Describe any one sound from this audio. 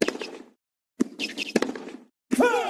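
A tennis racket strikes a ball.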